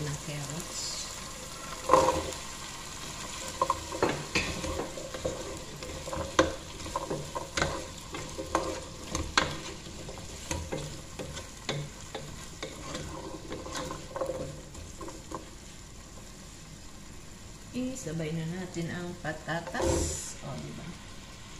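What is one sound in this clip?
Chopped vegetables tumble into a pot.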